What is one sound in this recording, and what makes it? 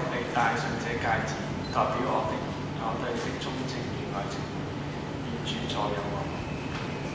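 A man speaks quietly in a large echoing hall.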